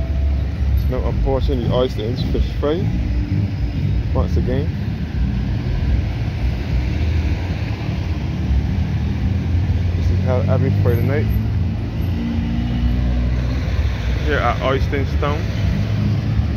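Traffic rumbles steadily on a nearby road.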